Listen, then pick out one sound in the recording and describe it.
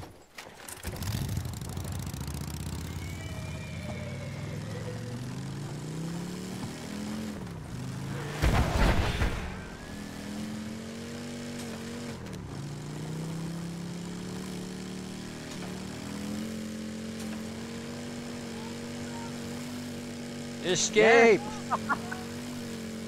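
A motorcycle engine drones and revs as it rides.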